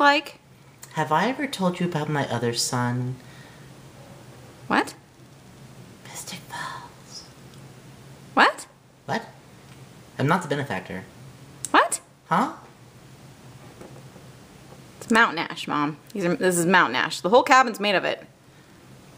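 A young woman speaks with animation in a playful character voice, close to a microphone.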